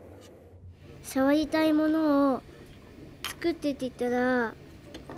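A young boy speaks softly close by.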